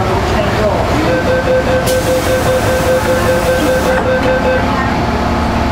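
A door chime beeps as the train doors close.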